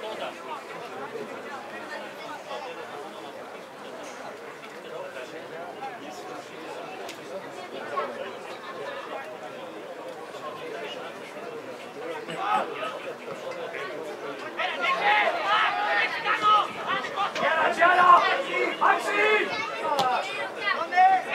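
Spectators chatter quietly nearby, outdoors.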